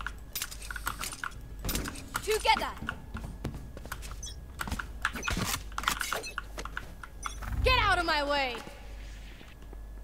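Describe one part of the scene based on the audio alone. Quick footsteps and clicks sound from a game.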